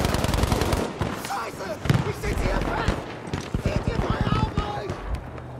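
Gunfire rattles in rapid bursts nearby and far off.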